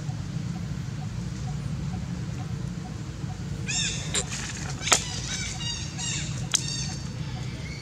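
A monkey gnaws and tears at a coconut husk.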